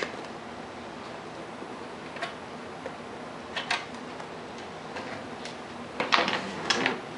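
Stiff fibreglass cloth crinkles and crackles as hands work it.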